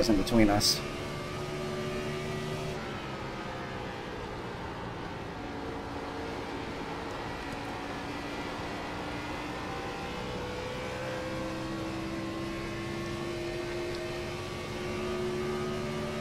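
A race car engine roars steadily at high speed, its pitch shifting slightly through the turns.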